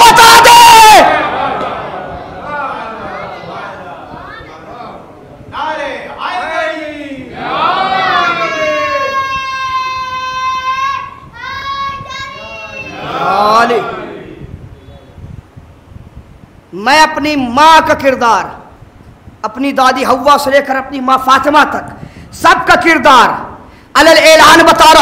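A young man recites and sings with passion into a microphone, his voice loud and echoing.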